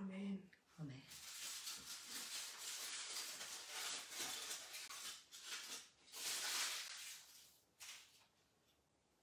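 Objects rustle and clatter as a woman handles them nearby.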